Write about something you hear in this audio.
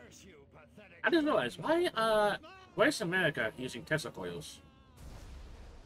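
A flying saucer crashes with a fiery explosion.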